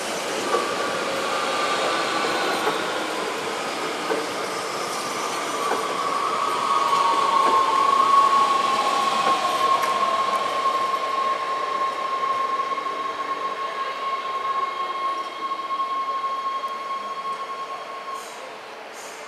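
An electric train hums with a rising whine as it pulls away.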